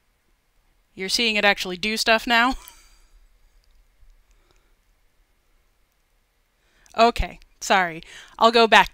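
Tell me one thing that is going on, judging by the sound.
A woman speaks with animation into a headset microphone, close by.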